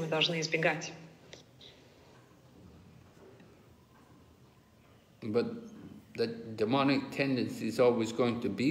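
An elderly man speaks slowly and wearily, close by.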